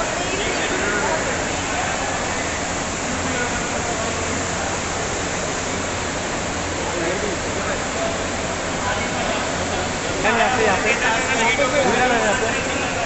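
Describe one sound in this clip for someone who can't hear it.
Men call out loudly to someone nearby.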